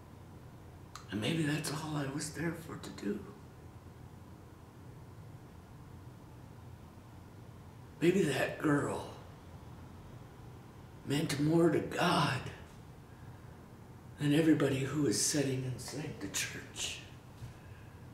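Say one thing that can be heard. A middle-aged man speaks close by in short, earnest bursts, with pauses between.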